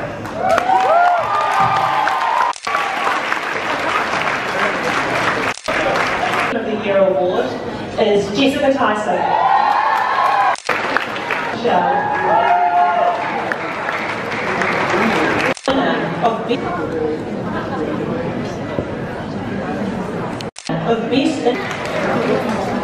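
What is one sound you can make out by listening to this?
Women on a stage clap their hands.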